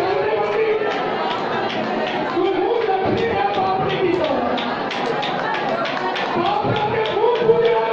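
People clap their hands in a quick rhythm.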